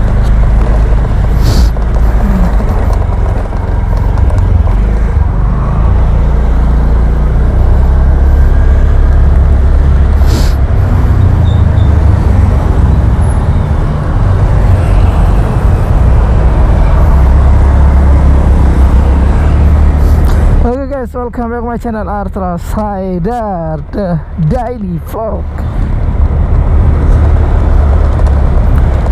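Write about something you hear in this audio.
A scooter engine hums and whines as it rides along.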